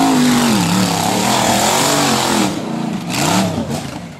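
A buggy crashes onto its side with a heavy thud.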